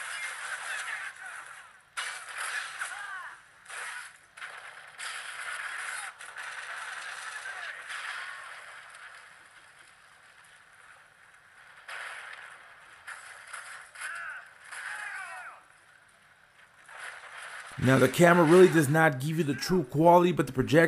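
Gunfire from a video game plays through small speakers in bursts.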